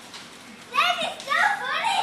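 A young child laughs.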